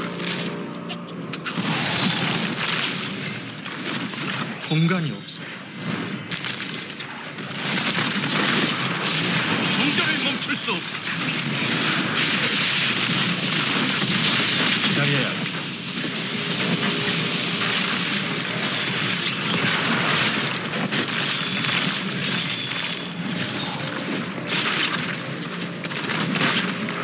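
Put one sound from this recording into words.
Game spell effects crackle and boom in dense, noisy bursts of battle.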